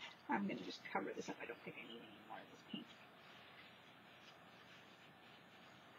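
A cloth rubs and wipes across a plastic sheet.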